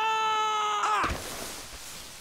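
A body tumbles and thuds onto rocky ground.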